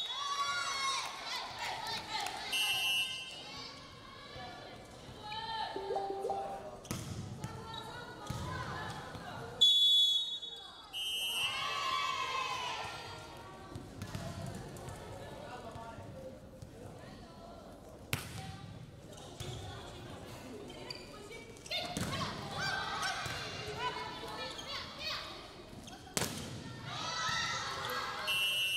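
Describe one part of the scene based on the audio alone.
Young women shout and call out to each other during play.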